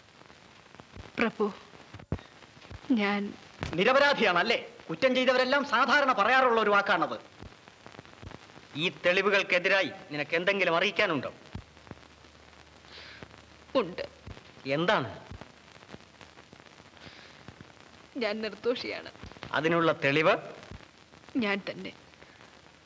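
A woman speaks with emotion.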